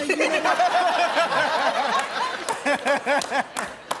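A group of men and women laugh and cheer.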